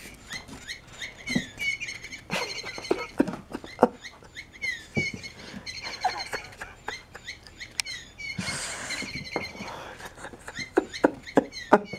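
A cat thumps and scrabbles on a carpet as it pounces and rolls.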